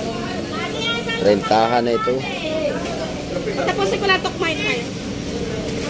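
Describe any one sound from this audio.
Men and women chatter nearby in a busy crowd.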